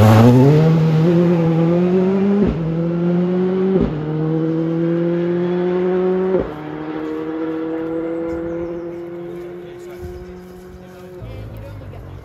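A car engine revs hard and shifts gears as the car speeds away into the distance.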